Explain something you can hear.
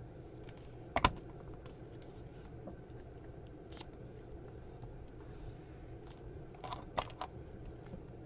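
Paper rustles and taps as it is handled.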